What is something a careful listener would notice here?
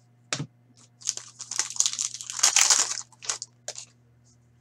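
Paper cards rustle and shuffle between hands.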